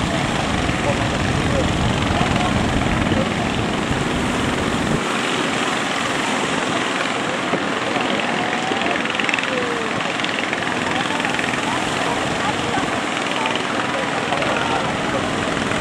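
Waves crash and roar onto the shore.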